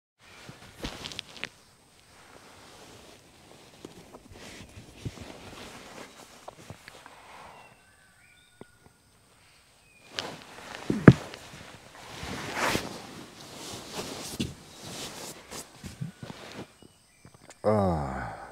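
Tent fabric rustles close by.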